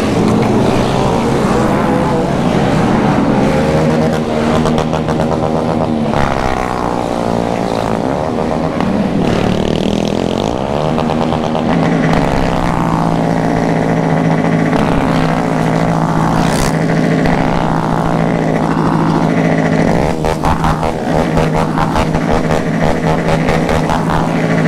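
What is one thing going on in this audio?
A motorcycle engine hums steadily close by, revving up and down.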